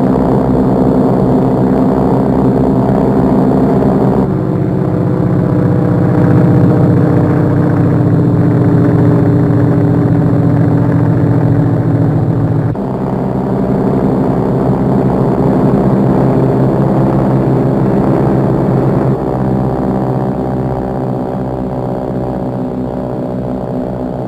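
Propeller plane engines drone loudly and steadily overhead.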